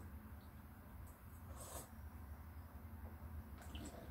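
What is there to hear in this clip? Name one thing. A man drinks from a can with soft gulps.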